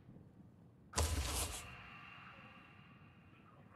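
A short chime sounds as a menu choice is confirmed.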